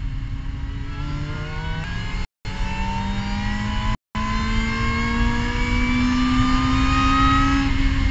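A race car engine revs up hard at full throttle, rising in pitch, heard from inside the cockpit.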